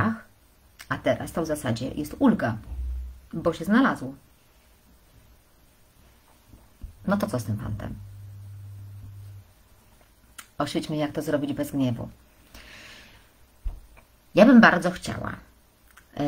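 A woman speaks with animation close to a microphone, in short bursts with pauses.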